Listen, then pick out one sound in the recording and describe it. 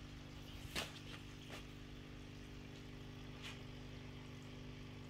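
Water bubbles and trickles from an aquarium filter.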